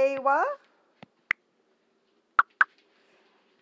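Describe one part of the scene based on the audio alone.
A phone's keyboard clicks softly as keys are tapped.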